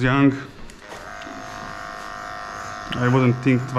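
Electric hair clippers buzz steadily up close.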